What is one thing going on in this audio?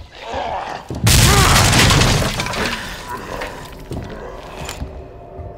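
A loud blast bursts and fades into a long hiss.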